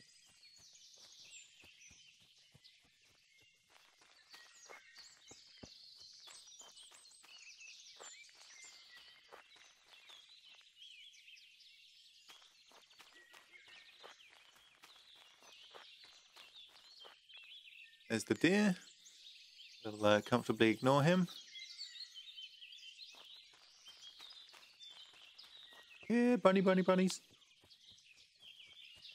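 Footsteps swish through tall grass and undergrowth.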